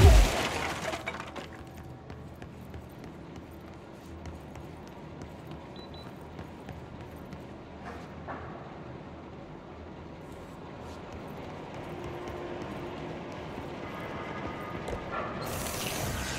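Footsteps hurry across a hard floor.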